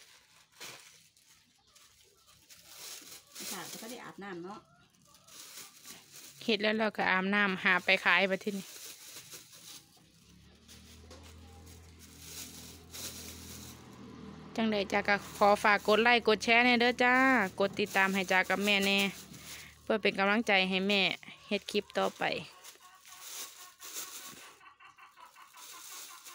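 Plastic bags crinkle and rustle close by.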